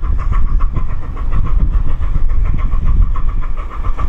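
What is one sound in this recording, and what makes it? A steam train chuffs in the distance and draws closer.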